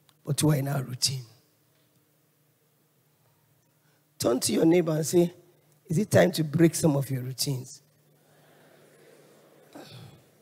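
A woman speaks with animation into a microphone in a large echoing hall, pausing between phrases.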